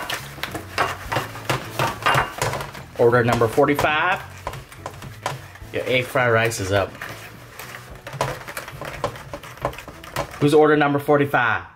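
Thin aluminium foil crinkles as fingers press and crimp its edge.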